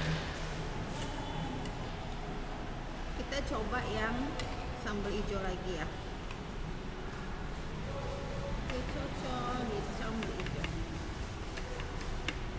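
Metal cutlery clinks and scrapes against a plate.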